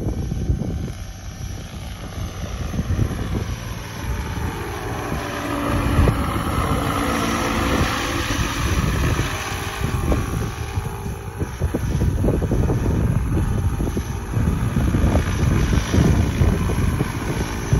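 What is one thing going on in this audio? A model helicopter's motor whines and its rotors whir as it hovers close by.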